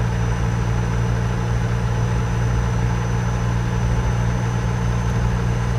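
A truck engine hums steadily at low pitch while driving.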